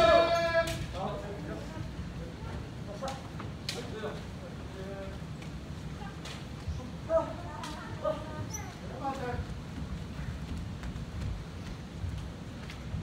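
Young men and women chatter quietly in an echoing hall.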